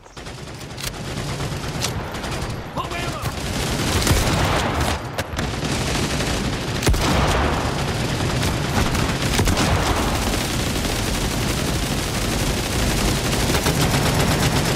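A military vehicle engine rumbles nearby.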